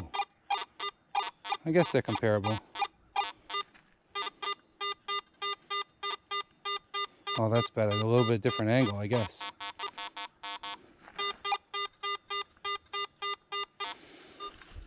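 A metal detector beeps in quick, steady pulses.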